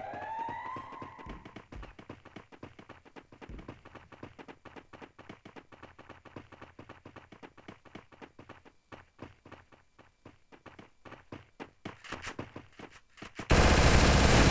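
Quick footsteps patter as a character runs.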